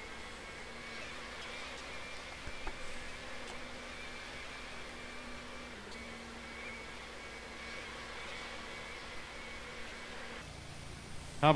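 A jet airliner's engines drone steadily.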